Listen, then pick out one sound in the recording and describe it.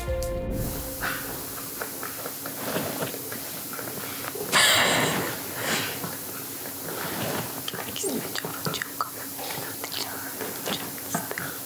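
Another young woman answers quietly, a little way off.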